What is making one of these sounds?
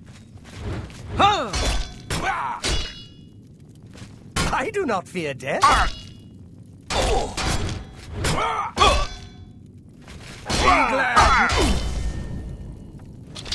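A man speaks in a low, gruff voice, close by.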